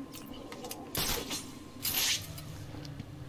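A grappling hook fires with a sharp whoosh.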